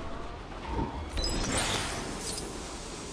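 A laser blast zaps.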